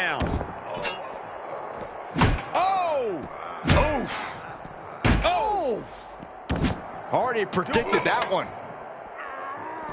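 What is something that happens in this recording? Heavy blows thud hard against a body.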